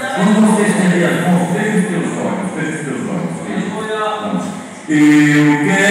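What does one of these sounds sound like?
An elderly man speaks with animation through a microphone and loudspeaker.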